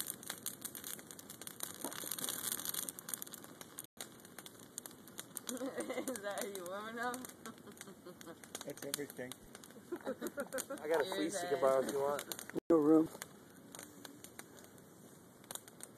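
A fire crackles and pops.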